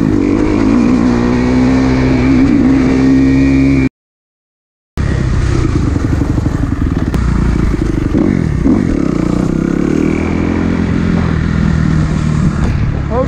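A dirt bike engine revs and roars up close, rising and falling in pitch as the rider speeds up and slows down.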